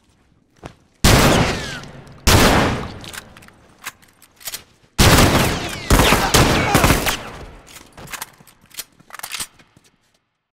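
Gunshots ring out loudly in rapid bursts.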